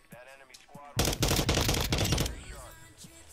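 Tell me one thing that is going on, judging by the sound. A rifle fires a rapid burst of shots close by.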